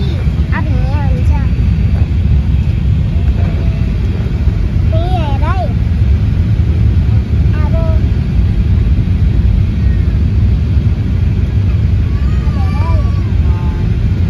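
A young child squeals and babbles excitedly nearby.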